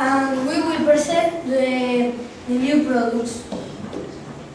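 A boy speaks clearly, presenting.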